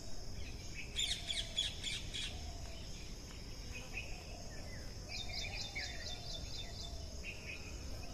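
A squirrel chirps in quick, sharp bursts.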